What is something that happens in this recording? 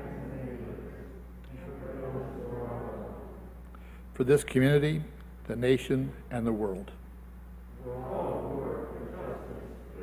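An elderly man reads aloud calmly into a microphone in an echoing room.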